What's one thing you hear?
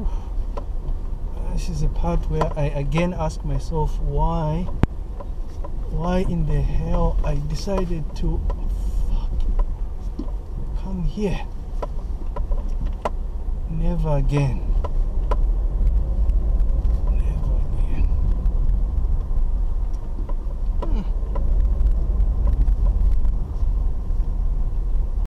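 A car engine rumbles steadily from inside the car.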